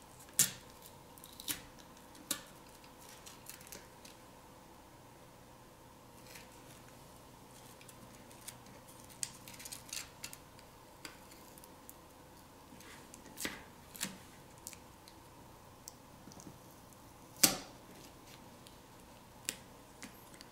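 Small plastic parts click and tap close by.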